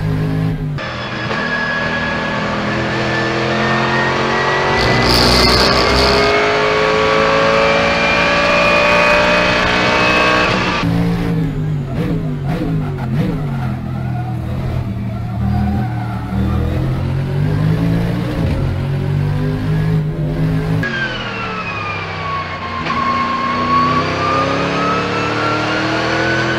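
A racing car engine roars loudly from inside the cockpit, its pitch rising and falling through gear changes.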